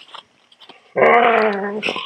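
A dog growls up close.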